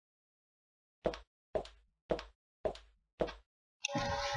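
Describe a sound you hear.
Footsteps fall at an even pace.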